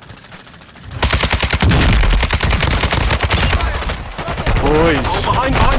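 A rifle fires in rapid shots.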